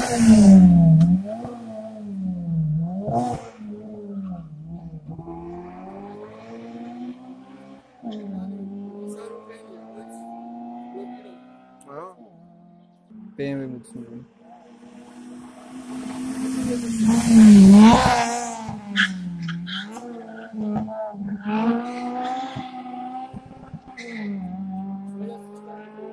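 Racing car engines rev hard and shift gears as the cars drive off into the distance.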